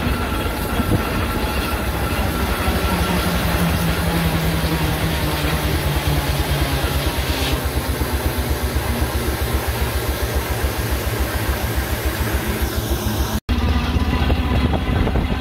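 Wheels rumble and clatter along a track.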